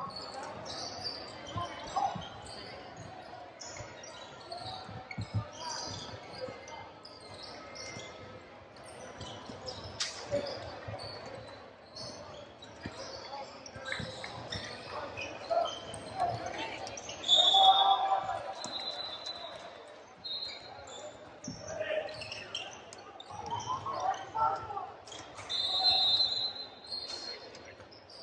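Spectators chatter in the background.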